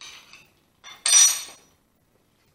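A plastic part clicks into place on a power tool.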